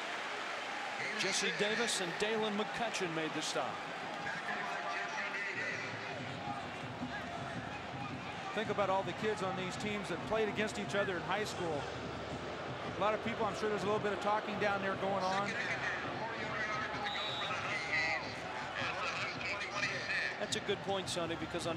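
A stadium crowd cheers and roars steadily in the background.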